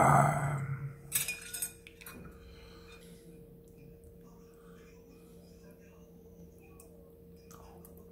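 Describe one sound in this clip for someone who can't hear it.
Chopsticks tap against a ceramic plate.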